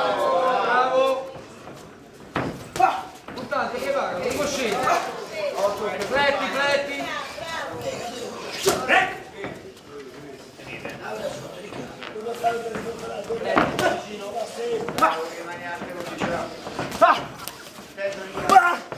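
A crowd of men shouts and cheers loudly nearby.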